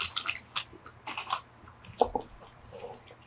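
A chocolate coating cracks and crunches.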